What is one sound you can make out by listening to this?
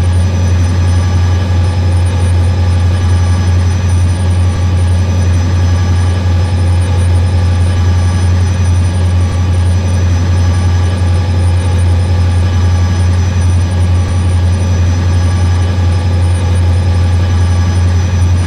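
A diesel locomotive engine drones steadily.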